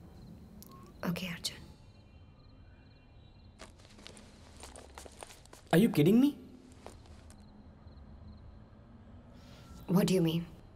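A man speaks sharply in short, loud bursts.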